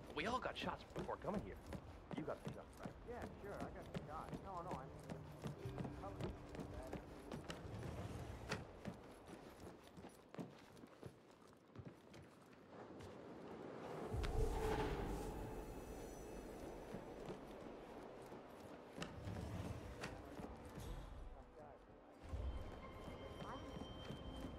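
Footsteps tread on a wooden deck.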